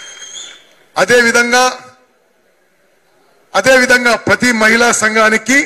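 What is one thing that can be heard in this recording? A man speaks forcefully into a microphone over a loudspeaker.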